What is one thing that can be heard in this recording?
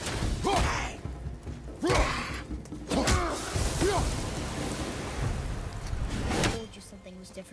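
An axe strikes with heavy, thudding blows.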